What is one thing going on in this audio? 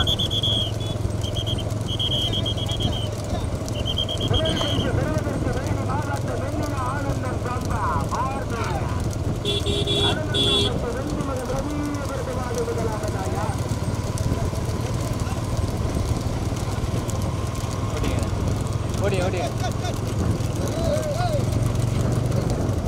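Hooves clatter on a paved road.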